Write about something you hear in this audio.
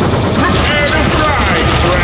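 A weapon fires a crackling energy beam.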